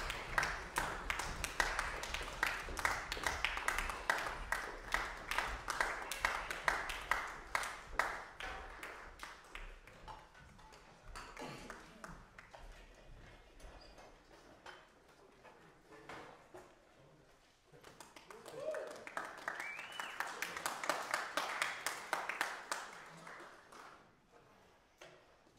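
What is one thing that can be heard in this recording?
An audience applauds in a large echoing hall, swelling and fading.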